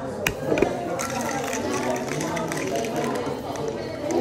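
Ice rattles inside a cocktail shaker being shaken hard.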